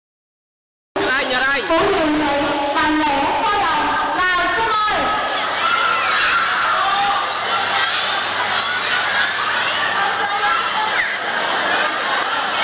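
Upbeat music plays loudly over a loudspeaker.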